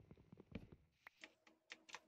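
A block cracks and breaks with a crunch.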